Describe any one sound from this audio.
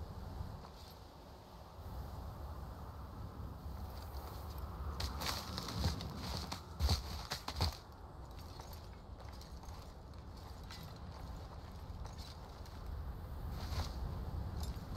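Wind howls steadily outdoors in a snowstorm.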